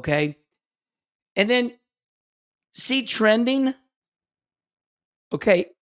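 A man speaks in short bursts through a microphone, heard over an online call.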